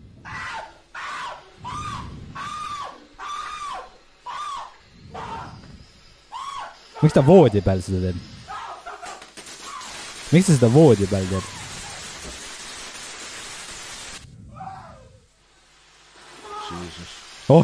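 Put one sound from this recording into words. Fireworks fizz and hiss loudly.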